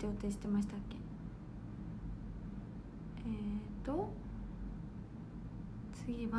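A young woman speaks softly and hesitantly, close to a microphone.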